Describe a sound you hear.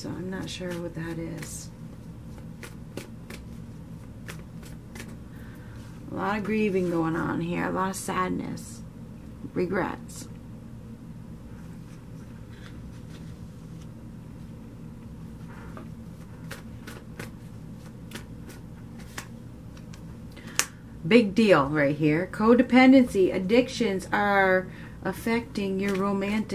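Playing cards shuffle and riffle in a deck.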